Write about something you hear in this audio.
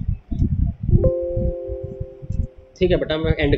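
A computer alert chimes briefly.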